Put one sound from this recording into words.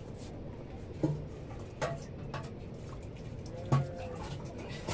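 A metal pot clanks and knocks against wood.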